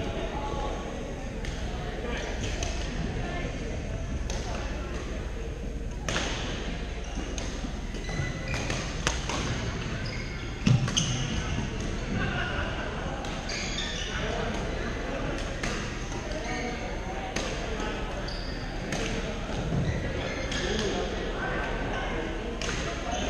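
Many people talk and call out around the hall.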